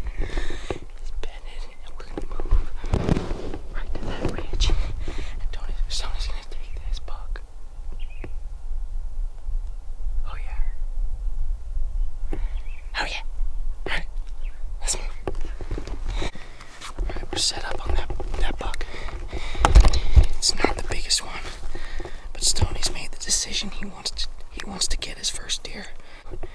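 A young man talks close to the microphone in a low, animated voice.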